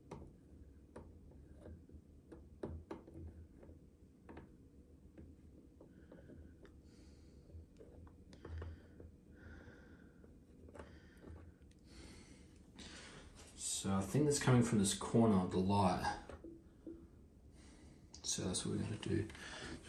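Hard plastic parts tap and click softly as they are handled.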